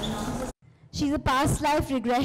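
A woman speaks into a microphone in a large room.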